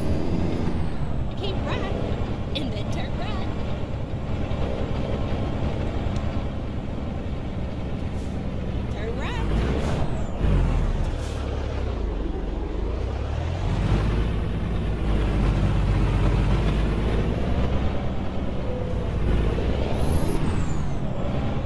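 A heavy truck engine rumbles steadily, its pitch dipping and rising as it slows and speeds up.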